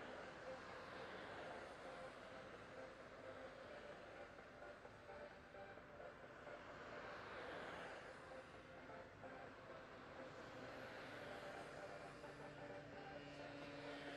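A pack of inline skaters' wheels whir and rumble on asphalt as they pass close by.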